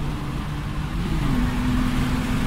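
A gear change briefly drops the engine's pitch.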